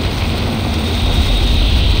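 Water gushes and splashes loudly.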